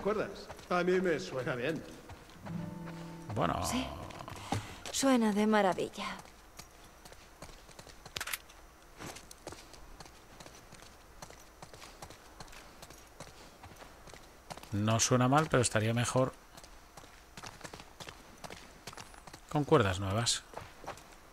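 A young man speaks into a close microphone in short bursts.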